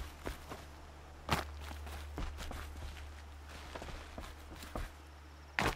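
Footsteps scuff on rock.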